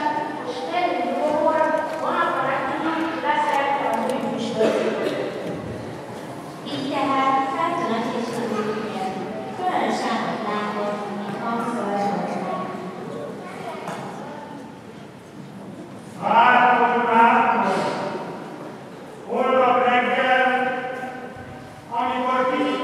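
A child sings through a microphone in a large echoing hall.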